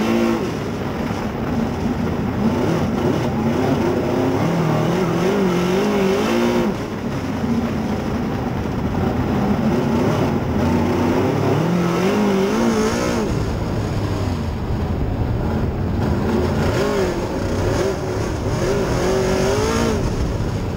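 A race car engine roars and revs up and down close by.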